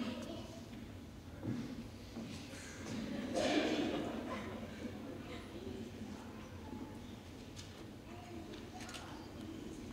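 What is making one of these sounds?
A choir of young men sings together in a large echoing hall.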